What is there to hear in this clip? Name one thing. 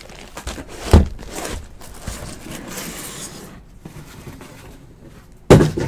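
Cards rustle softly between a pair of hands.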